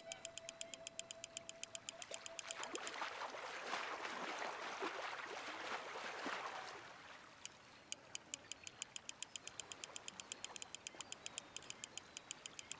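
A fishing reel clicks rapidly as line is wound in.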